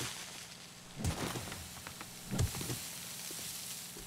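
A shovel strikes a body with dull thuds.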